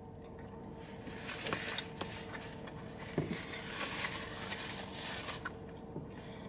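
A paper wrapper rustles and crinkles.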